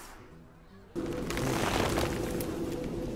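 A magical spell effect whooshes and hums loudly.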